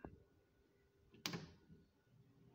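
A button on a radio clicks as it is pressed.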